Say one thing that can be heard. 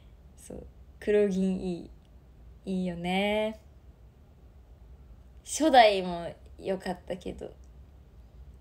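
A young woman speaks brightly and playfully into a microphone.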